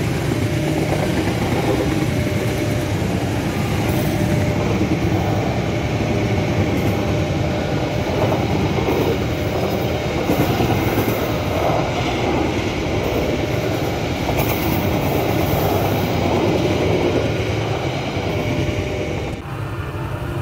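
A passenger train rumbles and clatters past close by on the rails.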